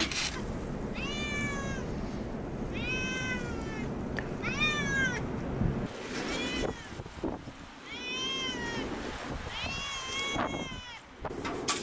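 A cat meows repeatedly nearby.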